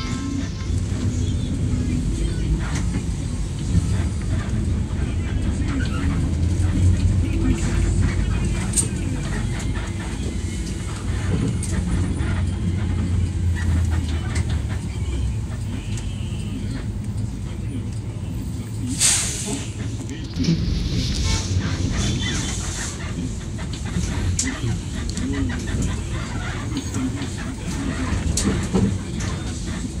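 A vehicle's engine rumbles low and steady from inside as it drives along a road.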